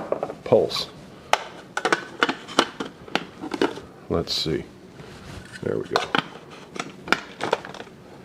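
A plastic lid clicks and knocks against a plastic bowl.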